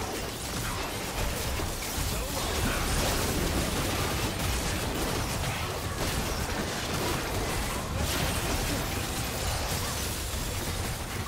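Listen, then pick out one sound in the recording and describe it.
Spell effects crackle and burst in a fast game fight.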